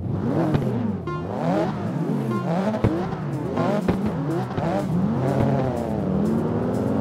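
A car engine revs up and down repeatedly while standing still.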